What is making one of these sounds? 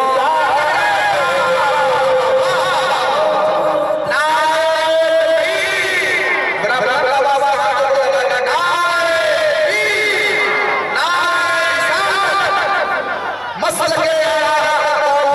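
A man sings a slow, drawn-out melody loudly through a microphone and loudspeakers.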